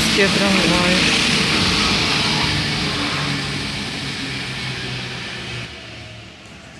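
A tram rolls past on wet rails and fades away.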